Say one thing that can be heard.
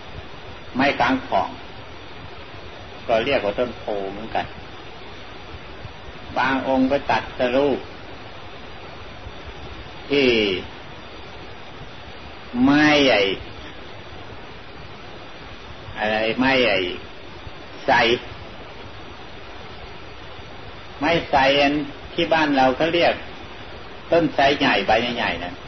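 An elderly man speaks slowly in short phrases, with long pauses between them.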